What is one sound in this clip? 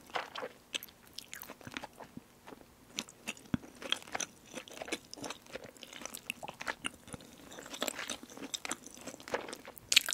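Chopsticks click and scrape against food close to a microphone.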